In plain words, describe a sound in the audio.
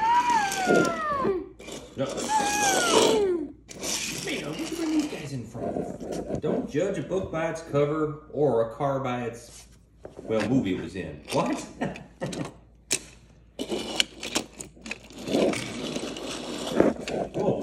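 Small toy cars roll and clatter across a wooden floor.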